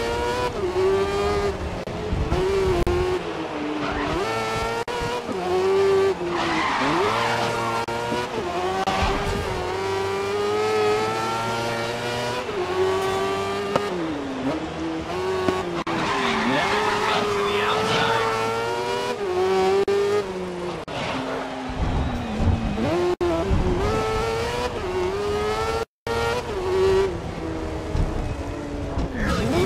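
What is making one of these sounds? A racing car engine whines loudly, rising and falling in pitch as it shifts gears and brakes.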